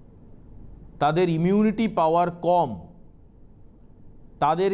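A man speaks calmly and clearly into a microphone, reading out the news.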